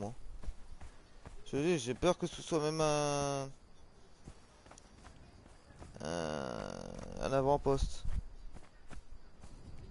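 Footsteps crunch quickly on sand.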